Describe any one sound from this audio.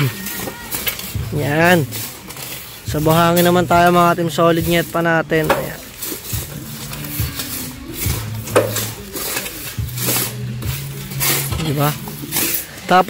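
A shovel scrapes through soil and tosses it down.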